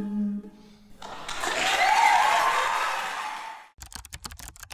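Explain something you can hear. An audience applauds and cheers loudly in a large hall.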